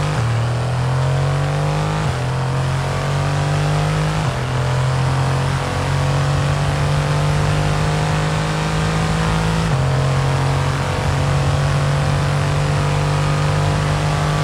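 A racing car engine accelerates at full throttle, its pitch climbing and dropping with each upshift.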